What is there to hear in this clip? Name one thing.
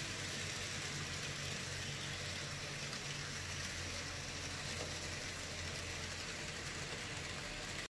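Model trains rumble and clatter steadily along their tracks.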